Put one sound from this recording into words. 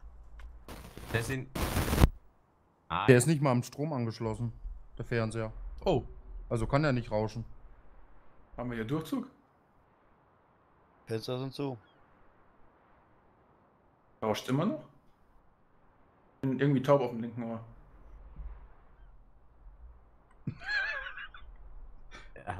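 A man talks casually into a close microphone, in bursts with pauses.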